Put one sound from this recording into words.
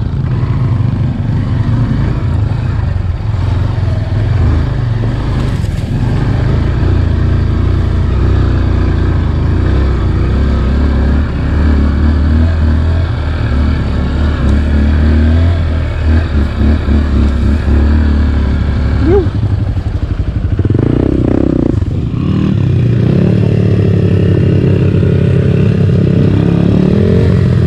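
A dirt bike engine putters and revs close by.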